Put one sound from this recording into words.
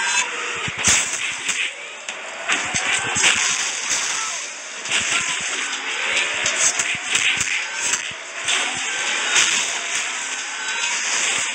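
Game weapons fire and blast in rapid bursts.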